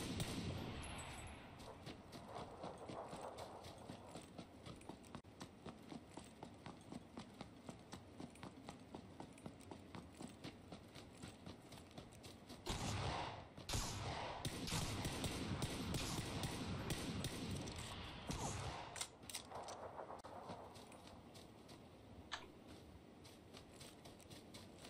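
Footsteps thud quickly and evenly while running.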